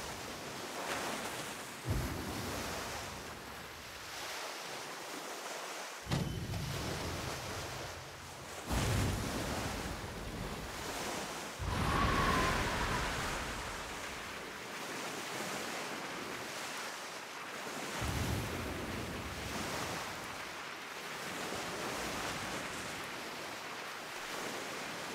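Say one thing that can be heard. Waves splash and rush against a sailing ship's hull.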